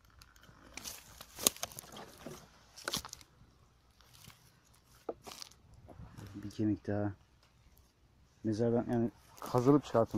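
Footsteps crunch on dry grass and gravel.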